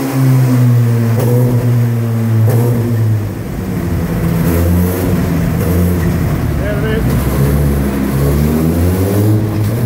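An inline-four sport bike engine runs on a stand, its revs rising and falling.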